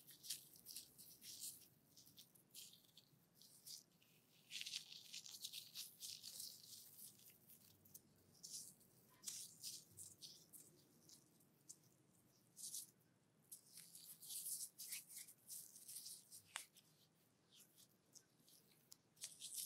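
Hands squish and rub cream together close to the microphone.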